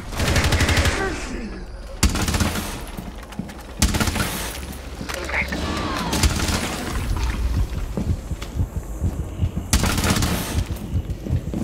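Gunshots fire in short loud bursts.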